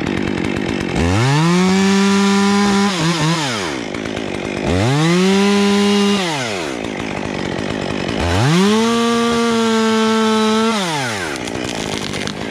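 A chainsaw revs up loudly in three bursts and winds back down.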